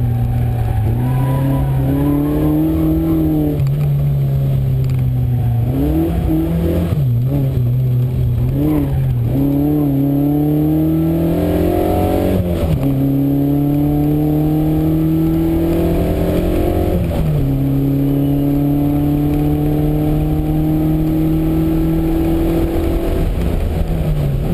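A car engine roars loudly, revving up and down through the gears.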